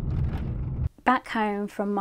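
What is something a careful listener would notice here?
A young woman speaks with animation, close up, in a quiet room.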